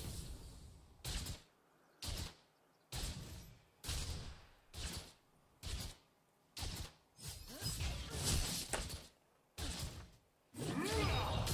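Heavy weapon blows land in a steady rhythm, about once a second.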